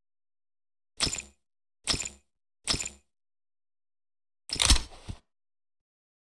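Short game menu clicks sound as items are selected.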